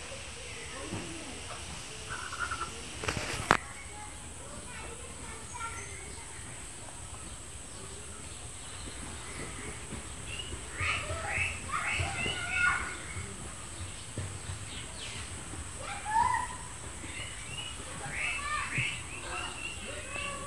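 Fish curry bubbles and simmers in a pan.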